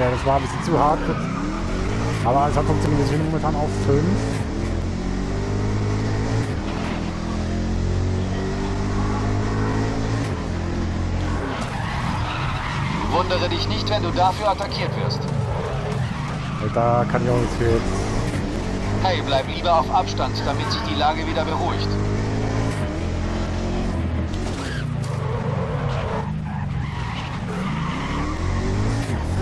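A race car engine roars and revs up and down through the gears.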